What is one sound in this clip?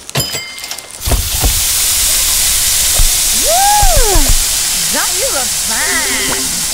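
Burger patties sizzle loudly on a hot grill.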